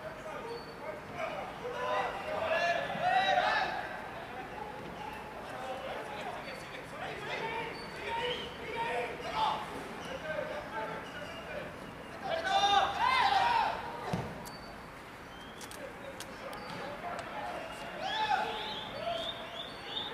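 Footballers shout to each other across an open pitch outdoors.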